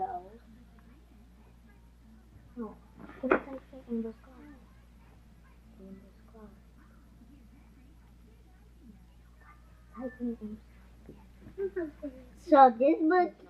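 Young girls talk and chatter close by.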